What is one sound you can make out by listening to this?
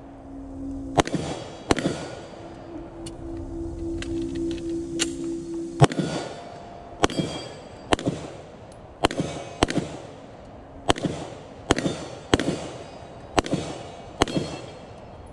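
Pistol shots ring out one after another outdoors, each echoing briefly.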